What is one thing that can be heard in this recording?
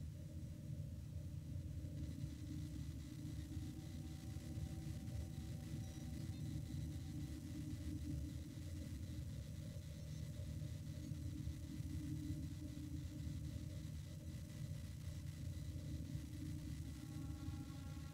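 A spaceship's engines hum low and steady.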